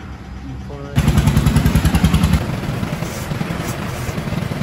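A hydraulic jack is pumped with quick metallic clicks.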